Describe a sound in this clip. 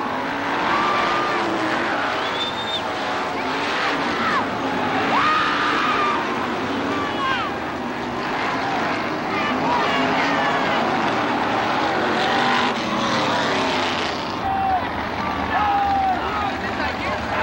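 Race car engines roar loudly as they speed around a dirt track.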